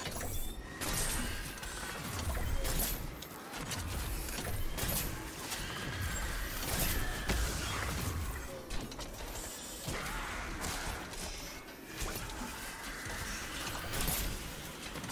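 Gunfire and explosions boom over and over.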